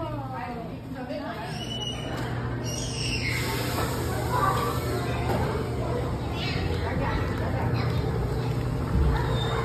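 Many children and adults chatter in a large echoing hall.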